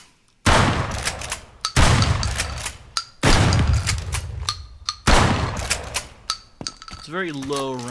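A shotgun's pump action racks with a metallic clack.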